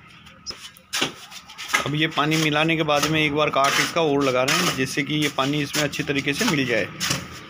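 A shovel scrapes through damp sand and cement.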